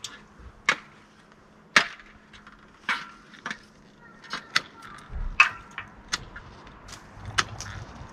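Pruning shears snip through branches in sharp clicks.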